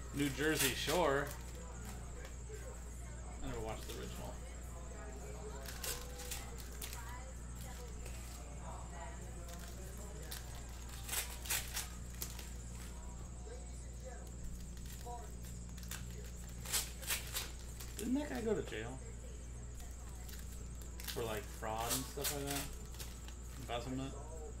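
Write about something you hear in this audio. Foil card wrappers crinkle as they are torn open.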